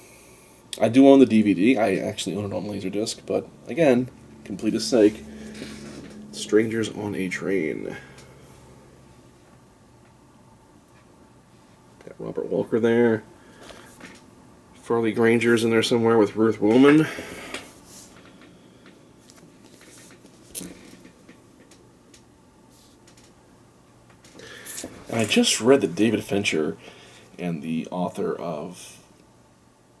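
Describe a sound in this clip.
A man talks casually and close up, with pauses.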